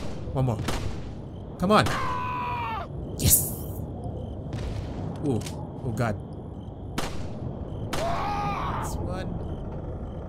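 A pistol fires sharp shots that echo.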